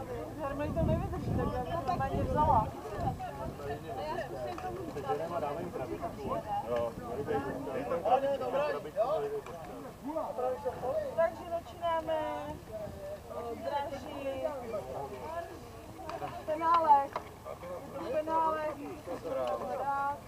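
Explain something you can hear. Several young players shout and call to each other outdoors across a field.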